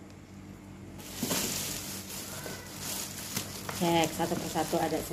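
A plastic bag rustles and crinkles as hands open it.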